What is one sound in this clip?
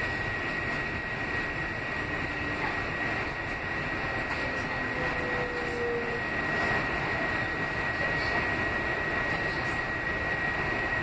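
A train's motor whines with a steady high tone.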